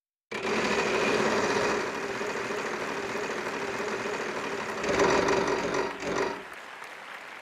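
A game wheel spins with rapid clicking that slows down.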